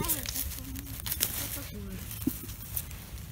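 Dry pine needles rustle and crackle as a hand digs in them.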